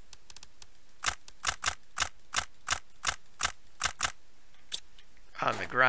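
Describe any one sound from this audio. Menu clicks tick in quick succession.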